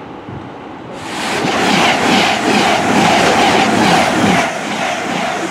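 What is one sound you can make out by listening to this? A train roars past close by.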